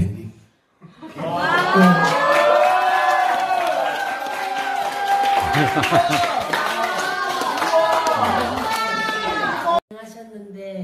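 A group of teenagers cheers and laughs.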